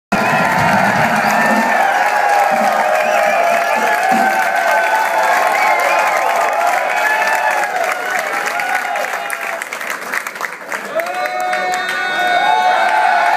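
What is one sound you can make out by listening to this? A loud crowd cheers and screams in a large echoing hall.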